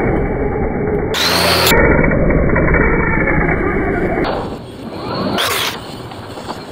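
A small electric motor whines as a toy car races past.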